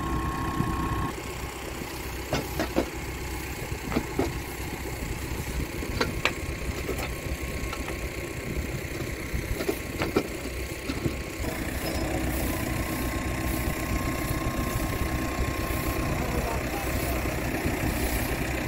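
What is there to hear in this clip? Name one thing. A tractor engine idles steadily.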